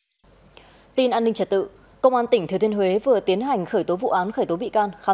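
A young woman reads out calmly and clearly into a microphone.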